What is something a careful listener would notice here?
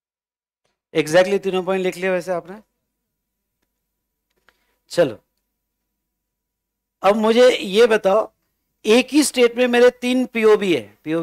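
A man speaks calmly into a close microphone, in bursts with long pauses.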